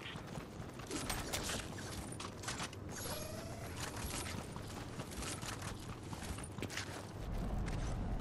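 Footsteps patter quickly on grass and pavement.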